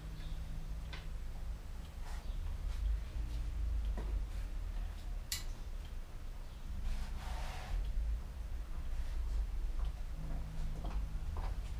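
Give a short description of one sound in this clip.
Metal bicycle parts click and clank.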